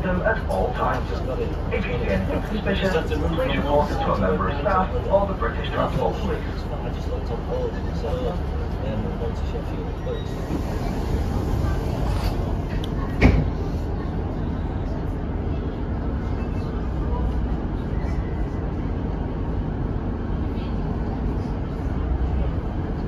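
A train rumbles steadily from inside a carriage.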